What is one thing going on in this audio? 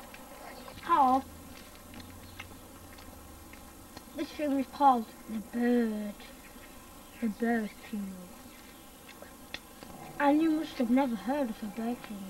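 A young boy talks in short bursts close by.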